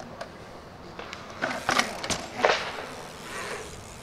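Bicycle tyres thud onto concrete.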